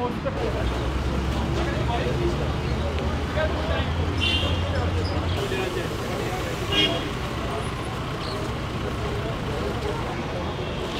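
Men talk among themselves outdoors at a distance.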